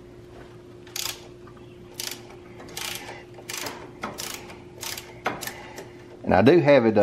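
A ratchet wrench clicks in short bursts as it turns a bolt.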